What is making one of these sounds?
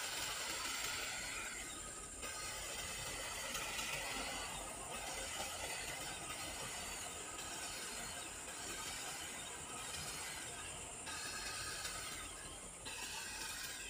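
A hedge trimmer buzzes in bursts while cutting a shrub.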